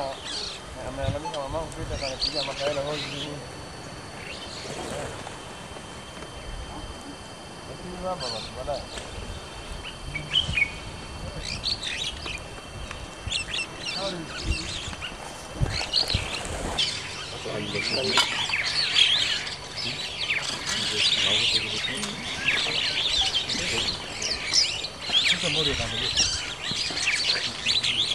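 Birds chirp and whistle throughout.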